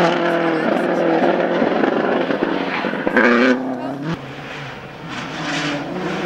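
A rally car engine roars loudly at high revs.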